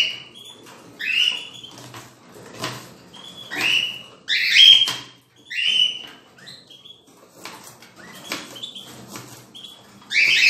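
Small birds chirp and squawk loudly nearby.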